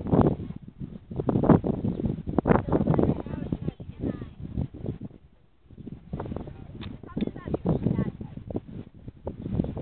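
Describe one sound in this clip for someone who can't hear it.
Wind gusts loudly outdoors in rough bursts.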